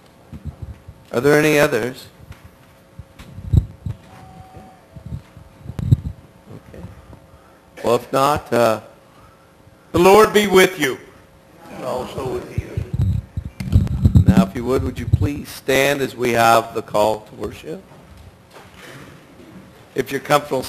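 A middle-aged man speaks calmly through a headset microphone, with pauses, heard through loudspeakers in an echoing hall.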